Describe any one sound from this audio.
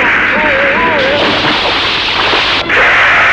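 A body splashes heavily into water.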